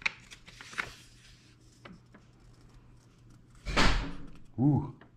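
Paper rustles as a sheet is unfolded close by.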